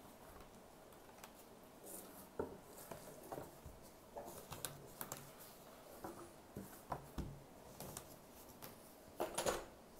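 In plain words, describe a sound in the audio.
Cardboard boards slide and tap on a plastic tablecloth.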